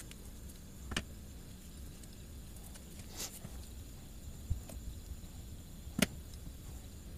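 A metal spoon clinks lightly against a tin.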